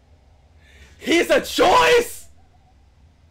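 A young man exclaims loudly.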